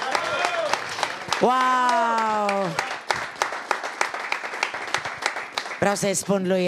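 An audience claps steadily in rhythm.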